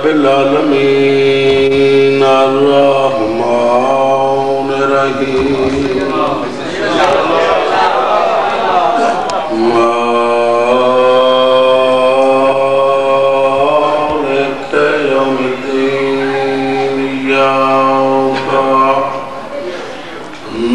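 A crowd of men chant together in a long, drawn-out mournful melody in an echoing hall.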